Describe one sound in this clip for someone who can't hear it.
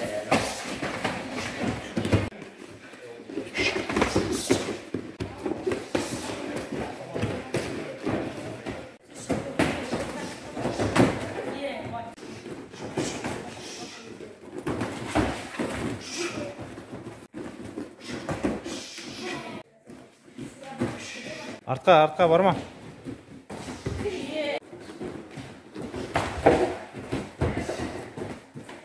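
Gloved punches thud against each other during sparring.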